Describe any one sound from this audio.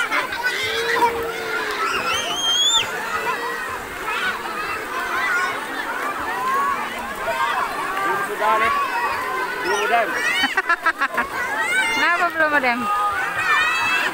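Children shout and laugh nearby, outdoors.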